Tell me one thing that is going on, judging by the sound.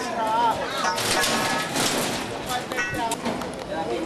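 A metal bar scrapes and clanks on the ground.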